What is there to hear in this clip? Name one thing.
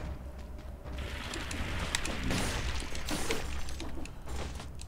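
Weapon strikes and small explosions crackle in a fast fight.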